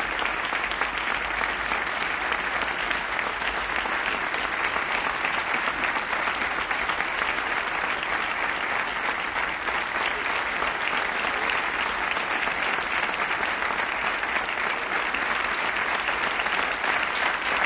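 A large crowd applauds steadily outdoors.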